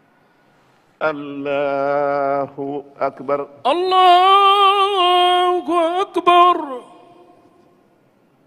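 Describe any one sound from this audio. A man chants a long call through a loudspeaker, echoing in a large hall.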